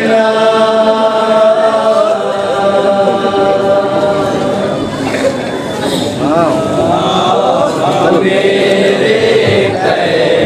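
A group of men chant a mournful recitation together through a microphone in a reverberant hall.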